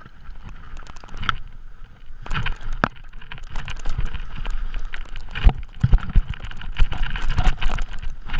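Bicycle tyres rattle and crunch over a bumpy dirt trail.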